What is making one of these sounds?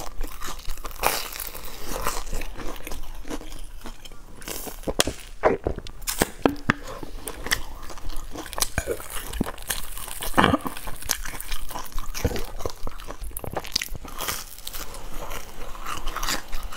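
A young woman bites and chews a crusty bread roll close to a microphone.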